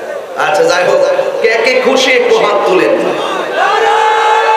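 A young man speaks with fervour through a loudspeaker.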